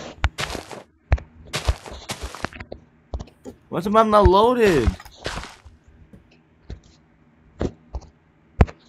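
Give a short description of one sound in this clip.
A hoe tills soil with soft thuds.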